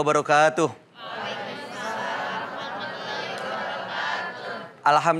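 A crowd of women sing together.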